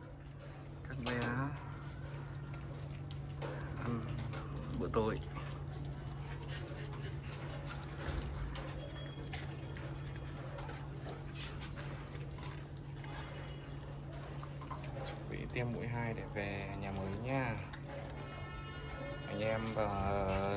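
Puppies lap and chew wet food noisily.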